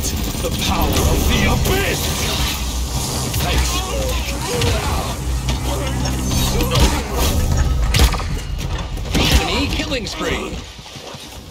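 Gunshots and magical blasts crackle rapidly in quick bursts.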